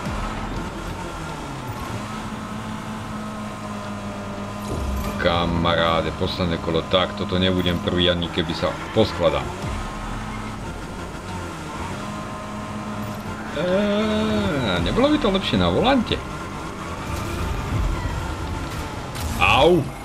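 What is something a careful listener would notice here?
A racing car engine hums steadily.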